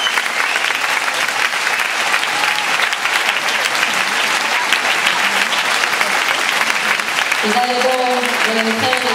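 An audience claps and cheers in a large echoing hall.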